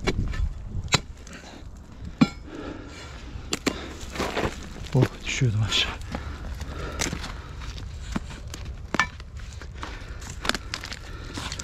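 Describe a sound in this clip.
A pick strikes hard, rocky ground with sharp knocks.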